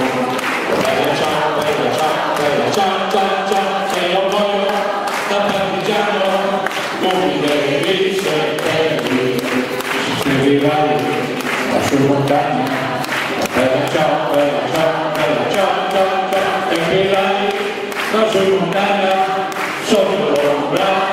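A large crowd of men and women sings loudly together.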